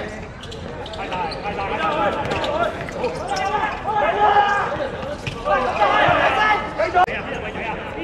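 Young men shout excitedly outdoors.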